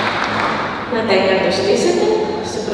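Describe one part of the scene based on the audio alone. A woman speaks through a microphone and loudspeakers.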